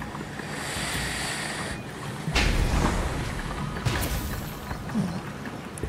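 Water rushes and splashes past a small boat.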